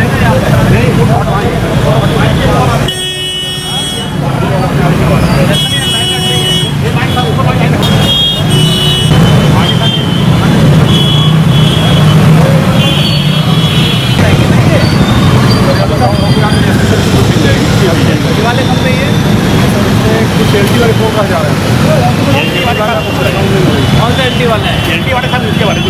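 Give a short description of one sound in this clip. Motorbikes and traffic rumble along a busy street.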